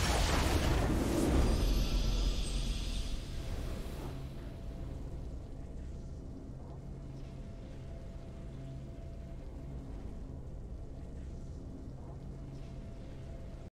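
A soft triumphant musical flourish plays and lingers.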